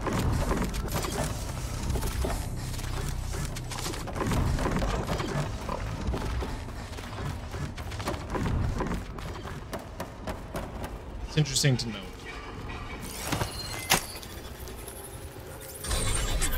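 A man talks with animation through a microphone.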